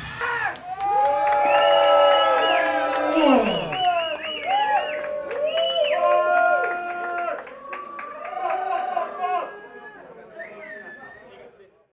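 Drums and cymbals are struck in loose hits.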